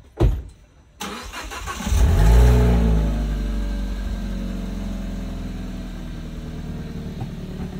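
A car engine starts with a roar and then idles steadily.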